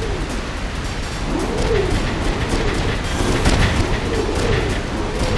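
Heavy mechanical footsteps thud on the ground.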